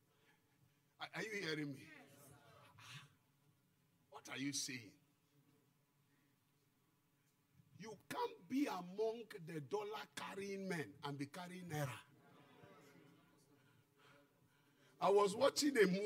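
A middle-aged man preaches loudly and with animation into a microphone over loudspeakers.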